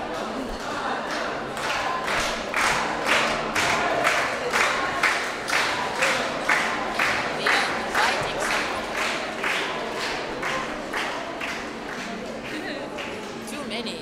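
A crowd claps in a steady rhythm in an echoing hall.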